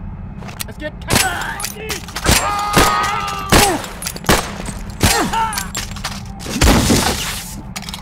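Gunshots fire in rapid bursts, loud and sharp.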